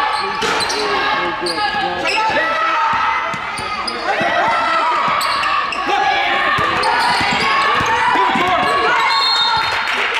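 Voices of players and spectators echo in a large gym.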